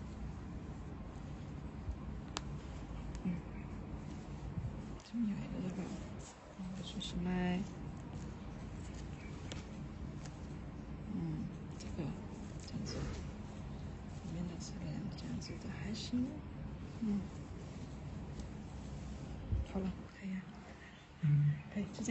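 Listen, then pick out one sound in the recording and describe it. Soft fabric rustles as hands handle it.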